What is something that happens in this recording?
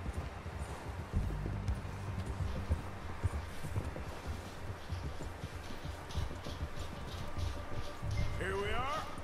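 A horse gallops through snow.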